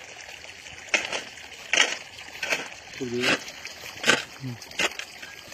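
A shovel scrapes and digs into wet soil.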